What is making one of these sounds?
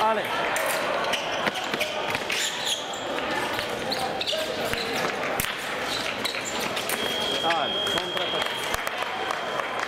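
Fencing blades clash and click.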